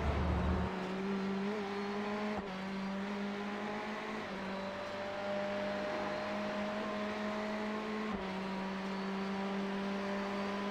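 A racing car engine drones steadily, shifting gears now and then.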